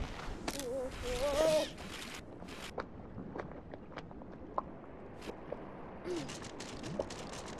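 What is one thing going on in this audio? A rope creaks softly as a small figure climbs down it.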